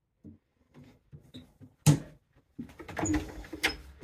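A wooden cabinet door swings shut with a knock.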